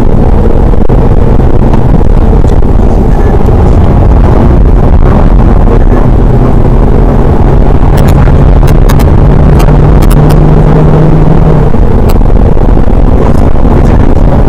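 Tyres rumble and hum on the road surface.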